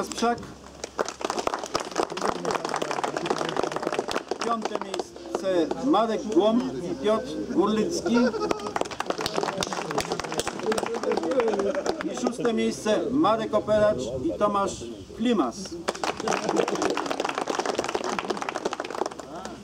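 A small group of people applaud.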